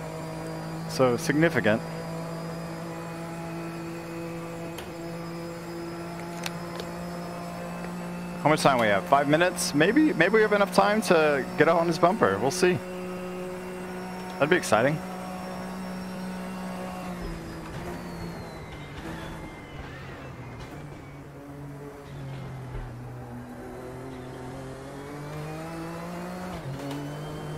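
A race car engine drones steadily, then drops and rises in pitch as it slows and speeds up.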